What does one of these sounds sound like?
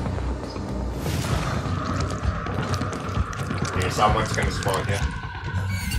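A creature growls and snarls nearby.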